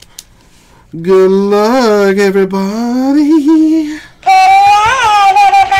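A plush toy hamster squeaks and chatters in a high, sped-up voice.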